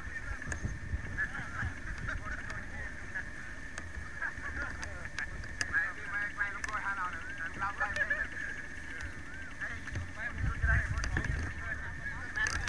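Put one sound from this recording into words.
Adult men and women chatter at a distance, outdoors.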